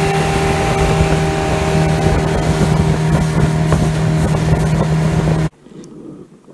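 A boat motor roars loudly and steadily, then cuts off.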